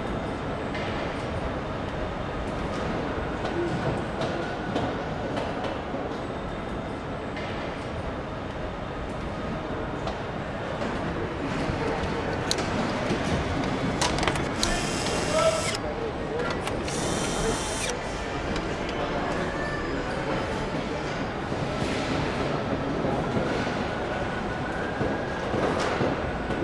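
Factory machinery hums and clatters steadily in a large echoing hall.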